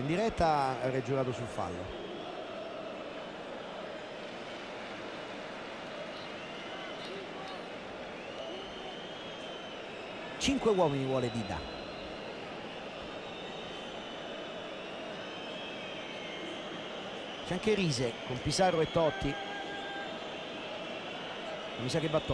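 A large stadium crowd murmurs and chants steadily.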